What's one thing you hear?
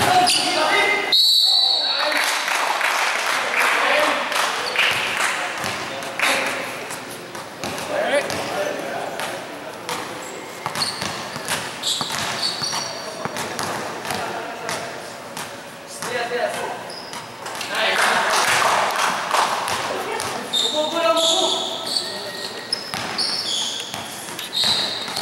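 A basketball bounces on a hard court floor, echoing in a large hall.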